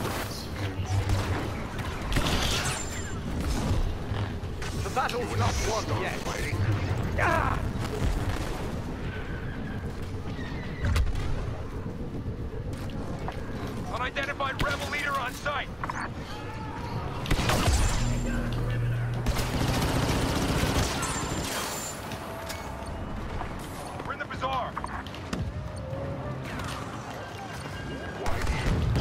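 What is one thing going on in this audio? Blaster guns fire in rapid bursts of sharp zaps.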